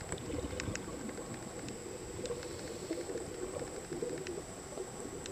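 Bubbles gurgle and burble underwater from a diver's breathing tube.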